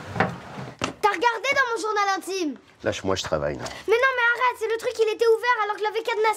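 A young girl speaks upset and loud, close by.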